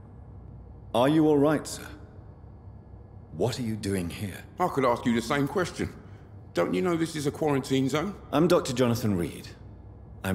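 A man speaks with concern.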